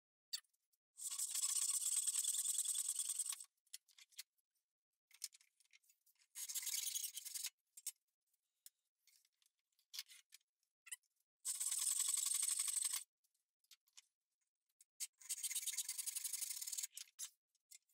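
A hand saw cuts briskly through wood in short bursts.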